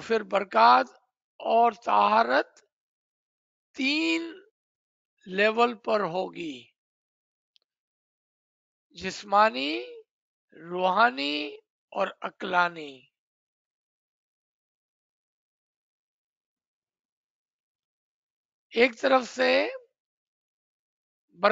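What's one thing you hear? A man speaks calmly through a microphone on an online call, in short phrases with pauses.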